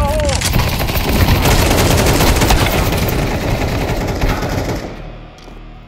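Rifles fire in rapid, loud bursts.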